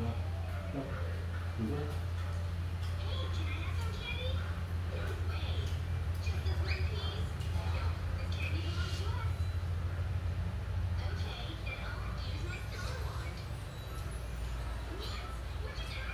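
Children chatter and call out nearby.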